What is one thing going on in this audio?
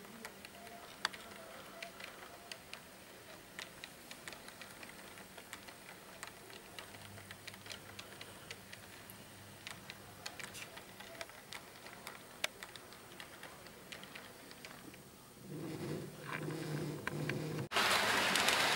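A model train rolls along, its wheels clicking softly over the rail joints.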